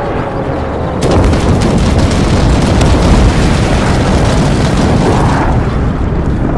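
A loud explosion booms and roars on.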